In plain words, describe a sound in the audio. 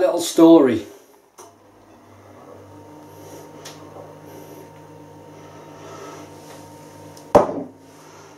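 Beer pours and foams into a glass.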